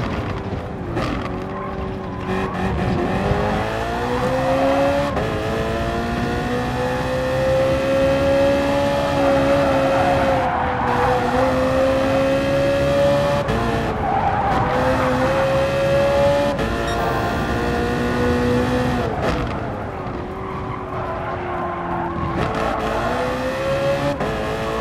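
A race car engine roars loudly, rising and falling in pitch as it shifts gears.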